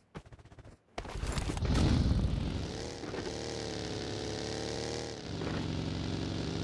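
A buggy engine revs and hums steadily.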